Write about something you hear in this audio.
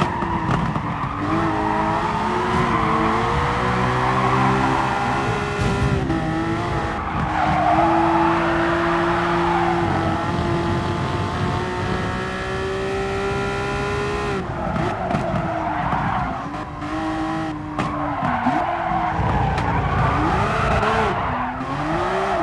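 A race car engine roars, its pitch rising and falling with the gear changes.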